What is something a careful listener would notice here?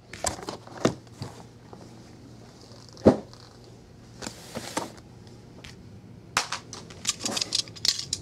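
Cardboard boxes knock and thud as they are set down on a hard table.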